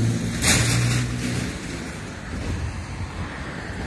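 A car drives along the road at a distance.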